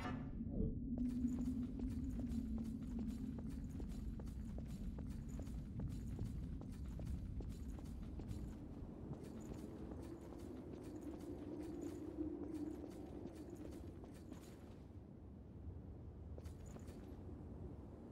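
Quick footsteps run over stone floors and up stairs.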